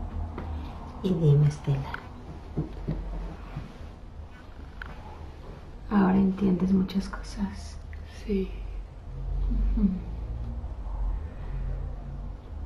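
A middle-aged woman speaks nearby.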